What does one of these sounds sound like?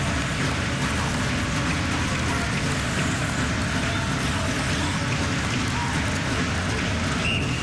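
Skate blades scrape across ice.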